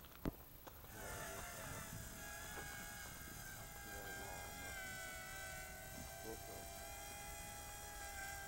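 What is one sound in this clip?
A small drone buzzes with a steady whine overhead.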